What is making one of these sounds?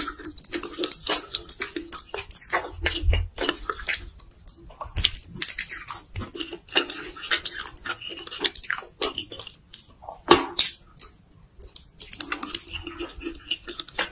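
A woman slurps noodles loudly and close up.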